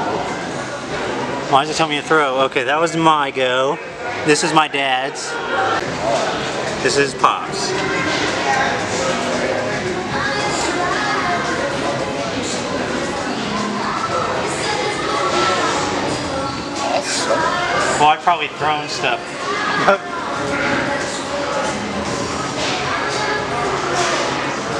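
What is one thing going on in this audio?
An arcade game plays electronic sound effects through a loudspeaker.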